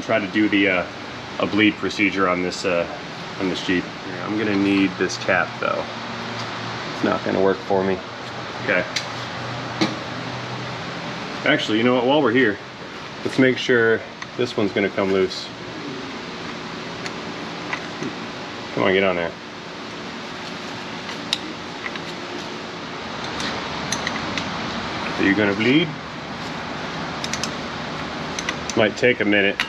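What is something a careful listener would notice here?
Metal parts clink and knock as they are handled.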